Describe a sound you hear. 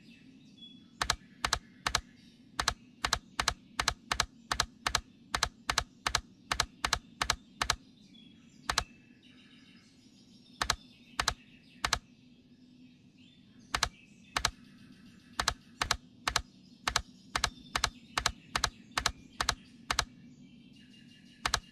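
Puzzle tiles slide into place with sharp clicks.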